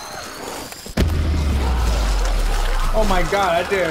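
A loud explosion booms with a deep rumble.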